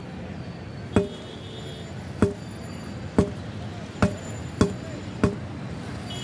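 A metal tool knocks on a wheel rim at steady intervals.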